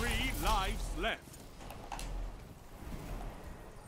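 Gunshots fire in a video game.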